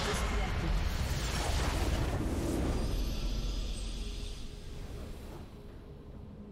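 A huge crystal shatters in a loud, rumbling explosion.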